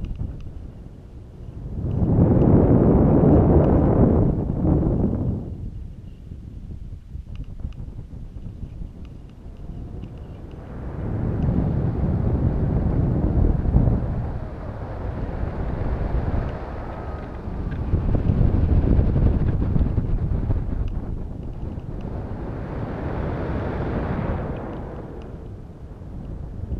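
Wind buffets in swelling and fading gusts.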